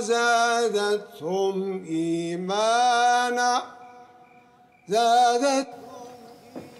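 A man sings in a long, wavering voice, echoing slightly.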